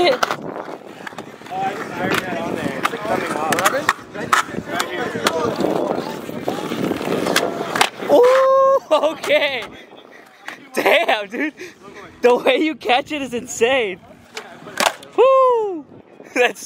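A skateboard clacks sharply against concrete.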